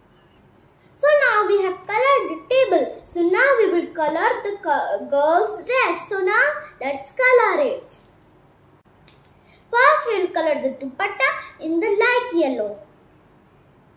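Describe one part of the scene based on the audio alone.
A young girl speaks with animation close by.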